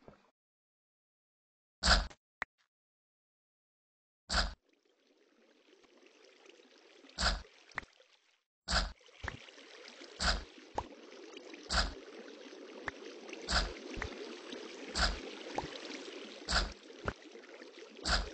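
A pickaxe chips at stone with repeated crunching thuds.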